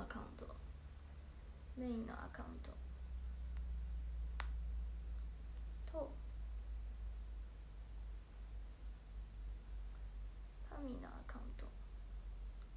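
A young woman speaks softly in short bursts nearby.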